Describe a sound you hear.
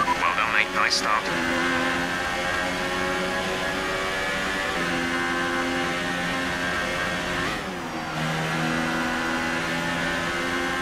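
A racing car engine screams at high revs, shifting gears as it speeds along.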